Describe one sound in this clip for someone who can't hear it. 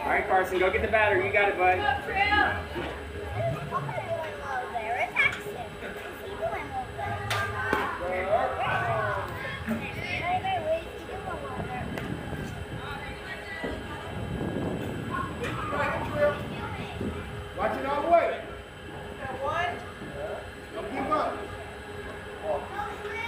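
Young women shout and call out across an open outdoor field.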